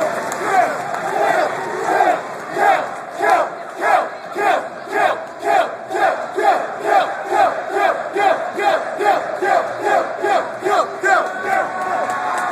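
A crowd chants in a steady rhythm in a large echoing hall.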